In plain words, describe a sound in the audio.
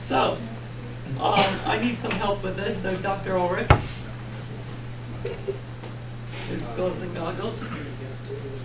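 A young man speaks to a small group.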